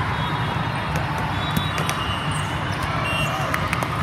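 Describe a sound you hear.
Young women shout and call out to each other on the court.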